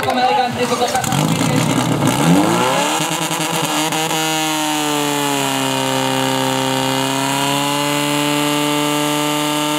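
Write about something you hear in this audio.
A pump engine revs up and then runs loudly and steadily.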